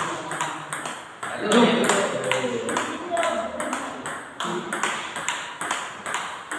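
Ping-pong balls click rapidly off paddles and a table.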